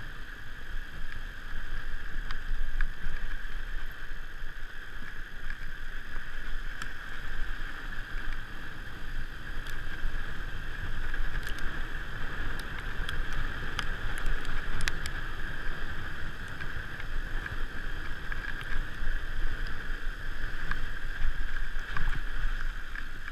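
A bicycle chain and frame rattle and click over bumps.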